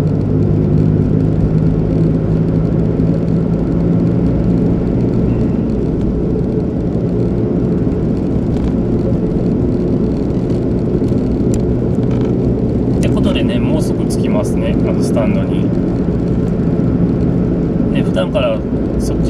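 A car engine hums steadily as it drives along a road.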